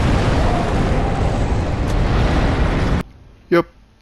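A huge creature roars and rumbles loudly.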